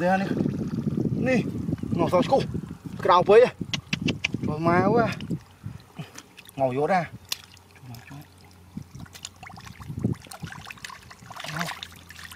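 Fish flap and splash in shallow water.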